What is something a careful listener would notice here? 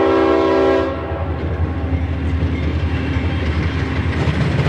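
A diesel locomotive engine rumbles closer.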